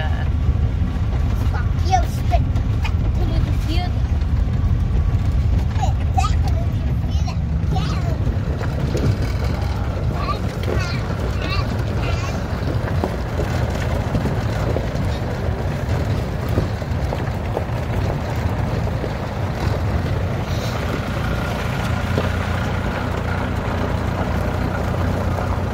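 Tyres crunch on a gravel road.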